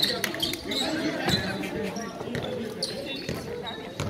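A crowd of spectators chatters quietly nearby.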